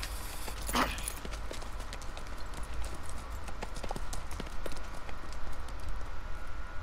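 Horse hooves clop steadily on gravel.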